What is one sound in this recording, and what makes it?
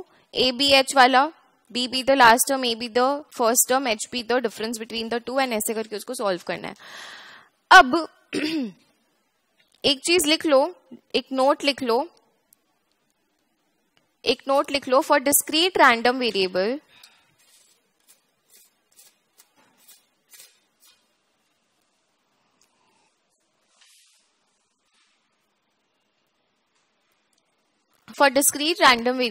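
A young woman speaks calmly into a headset microphone, explaining.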